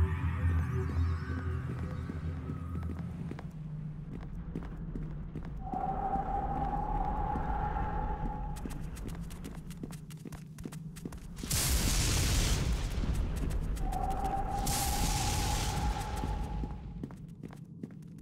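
Footsteps tap on stone as a figure walks.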